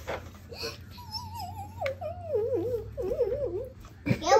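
A young child talks in a high, sing-song voice close by.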